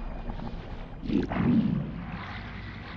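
A game portal gives a deep whoosh as the player passes through.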